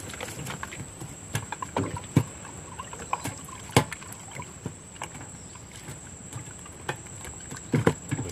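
A fish flaps and thumps against a wooden boat's floor.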